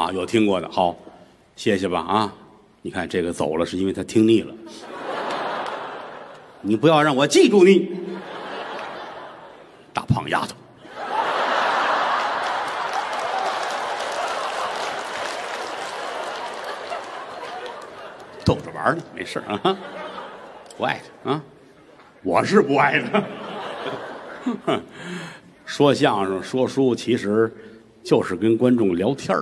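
A middle-aged man talks with animation through a microphone in a large hall.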